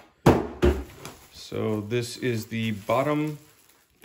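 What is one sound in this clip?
Plastic wrapping crinkles as it is handled.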